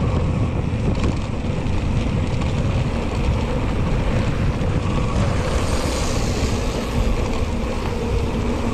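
Wind buffets a microphone outdoors in a steady, loud rumble.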